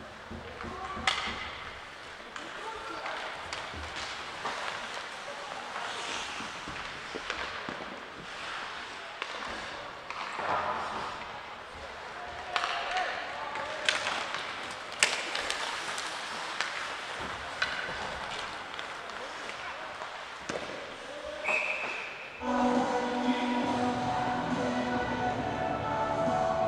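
Skates scrape and hiss on ice in a large echoing rink.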